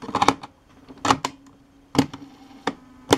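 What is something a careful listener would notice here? A tape player's lid snaps shut.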